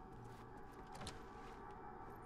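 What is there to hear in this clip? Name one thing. A door swings open with a thud.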